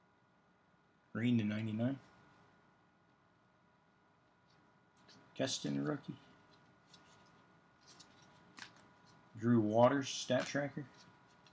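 Cards rustle and slide softly as they are flipped through by hand.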